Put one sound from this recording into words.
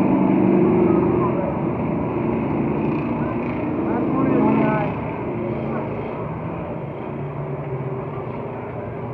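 Race car engines roar as cars circle a track.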